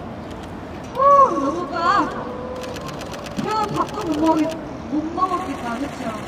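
A young woman speaks brightly into a microphone over a loudspeaker.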